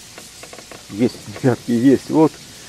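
A fishing reel cranks with rough, rapid rattling.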